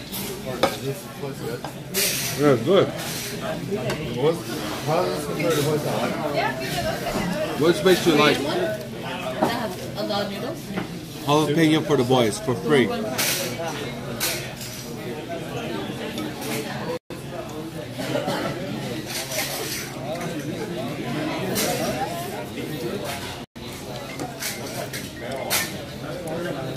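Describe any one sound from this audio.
Several people chatter in a busy room.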